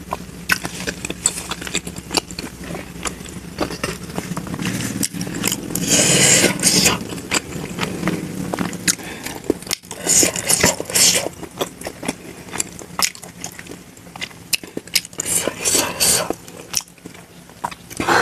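Fingers squish and mix soft food wetly.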